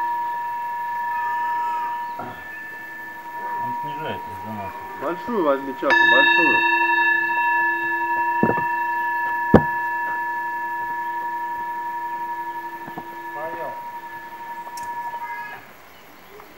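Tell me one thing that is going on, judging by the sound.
A metal singing bowl rings with a steady, humming tone that slowly fades.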